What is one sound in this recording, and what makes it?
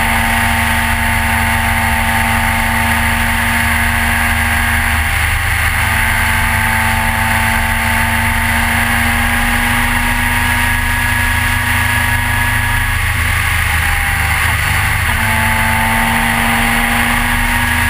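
A motorcycle engine hums steadily at speed, easing off briefly before picking up again.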